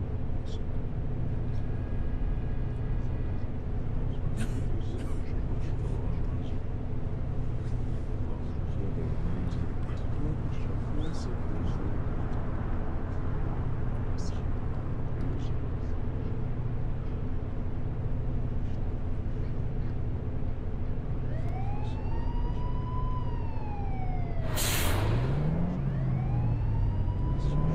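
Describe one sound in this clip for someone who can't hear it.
A bus engine idles with a low, steady rumble.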